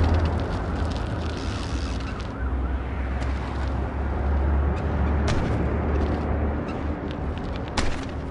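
Bicycle tyres roll and thump over wooden ramps.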